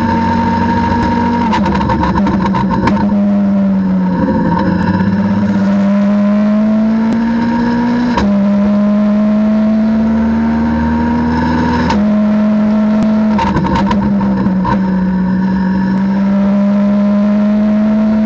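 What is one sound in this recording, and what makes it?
A race car engine roars loudly from inside the cockpit, revving up and dropping on braking.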